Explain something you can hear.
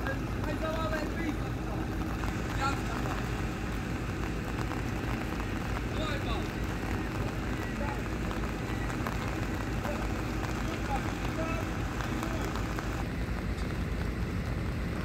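A heavy engine rumbles steadily outdoors.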